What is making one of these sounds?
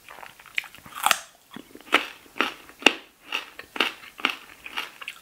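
A woman bites into a crisp raw carrot with a sharp snap.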